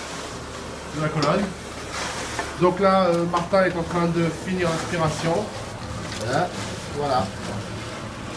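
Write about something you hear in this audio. A man talks nearby in a relaxed voice.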